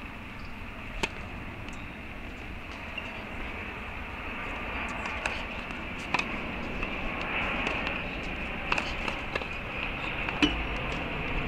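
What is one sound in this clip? A tennis ball is struck with a racket, with sharp pops at intervals.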